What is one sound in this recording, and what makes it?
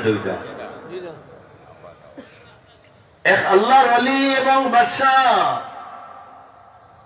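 An elderly man preaches into a microphone over loudspeakers, his voice rising into a long, loud sung chant.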